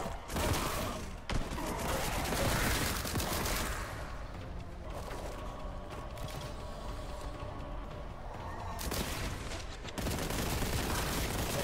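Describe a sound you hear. A gun fires rapidly with loud blasts.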